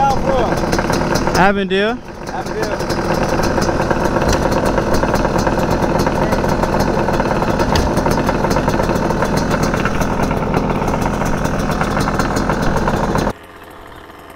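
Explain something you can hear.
A dirt bike engine idles close by with a loud, steady rumble.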